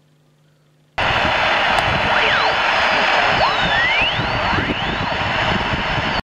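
A radio plays loud static with whistles gliding up and down as it is tuned.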